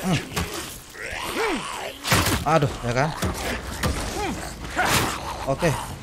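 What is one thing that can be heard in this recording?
A weapon strikes with heavy thuds.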